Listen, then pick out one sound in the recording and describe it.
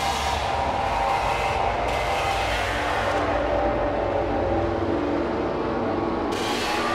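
Loud electronic dance music plays with a pounding beat and filter sweeps.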